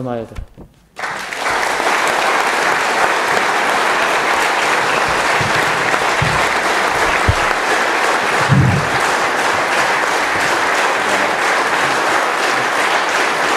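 A large crowd applauds loudly.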